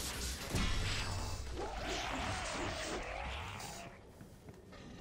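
An electric blast crackles and booms loudly.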